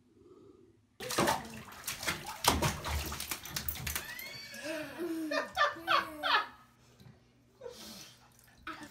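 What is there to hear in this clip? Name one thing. Water splashes and sloshes in a bathtub.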